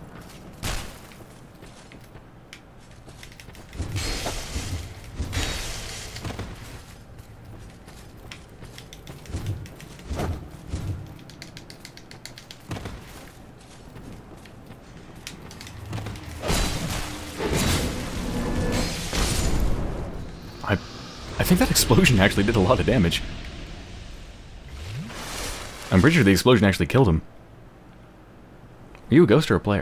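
An armoured warrior's footsteps crunch on gravel.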